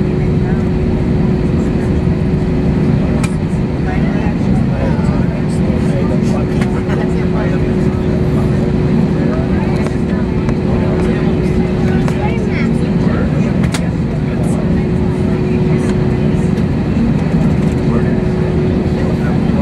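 A jet engine roars steadily from inside an aircraft cabin.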